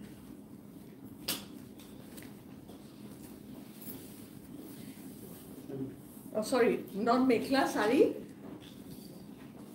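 Fabric rustles as a cloth is unfolded and shaken.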